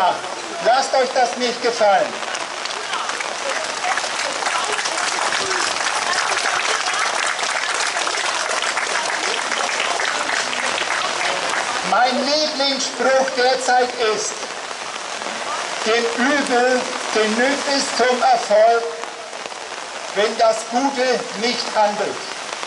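Rain patters steadily on umbrellas.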